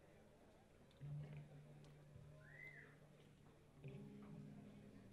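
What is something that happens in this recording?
A bass guitar plays low, sustained notes through an amplifier.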